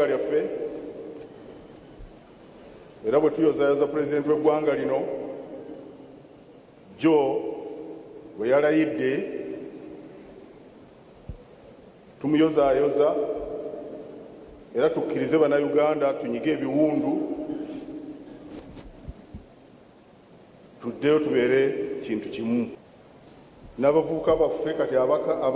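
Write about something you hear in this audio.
An elderly man speaks slowly and with emphasis into a microphone, his voice echoing in a large hall.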